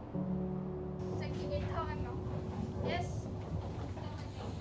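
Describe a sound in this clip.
A woman speaks briefly from across a room.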